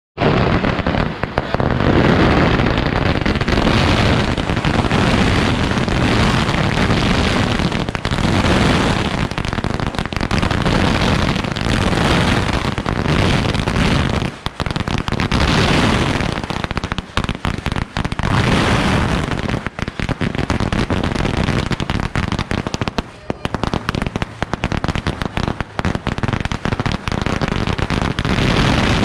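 Firecrackers crackle and pop in rapid, loud bursts close by.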